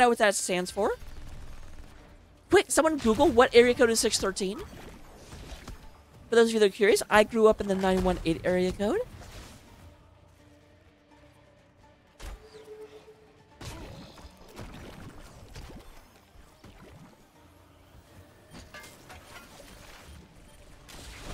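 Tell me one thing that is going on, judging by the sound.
Battle sound effects clash and blast in a video game.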